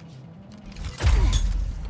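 A machine bursts into life with a loud, rumbling whoosh.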